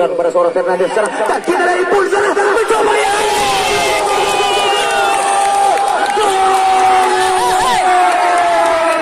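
A large outdoor crowd shouts and cheers loudly.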